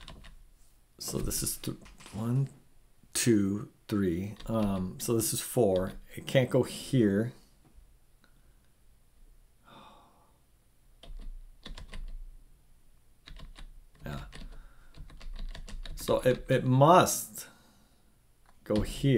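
A middle-aged man talks calmly and thoughtfully into a close microphone, with pauses.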